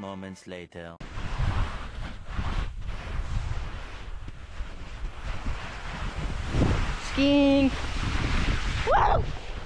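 A person slides down snow with a steady scraping rush.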